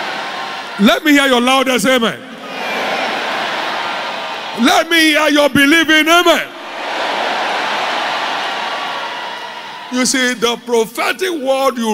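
A man preaches loudly through a microphone in a large echoing hall, shouting in short bursts.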